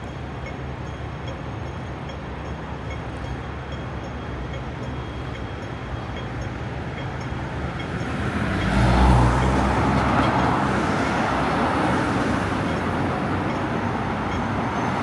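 City traffic rumbles steadily in the distance.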